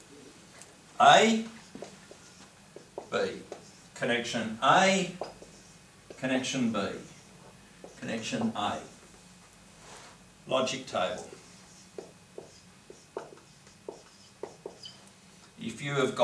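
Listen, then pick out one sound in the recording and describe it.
A middle-aged man speaks in a calm, lecturing voice, close by.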